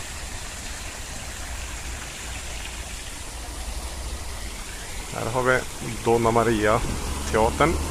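Fountain water splashes steadily into a pool.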